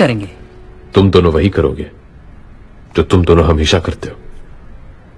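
A man speaks calmly and firmly.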